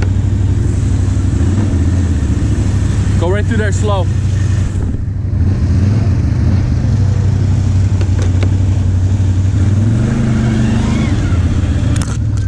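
Tyres churn through wet mud and splash water.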